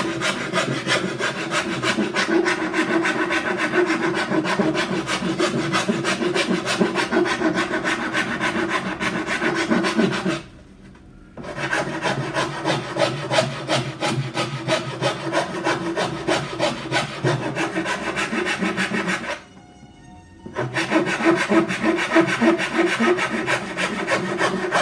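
A gouge scrapes and shaves wood in short, repeated strokes.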